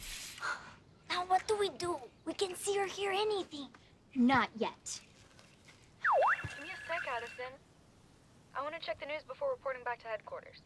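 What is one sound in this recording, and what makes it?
Young girls whisper and talk quietly close by.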